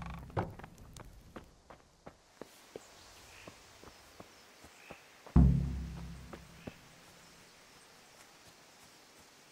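Footsteps crunch steadily on a dirt path and grass.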